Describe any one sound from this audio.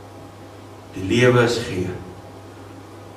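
An older man speaks briefly through a microphone.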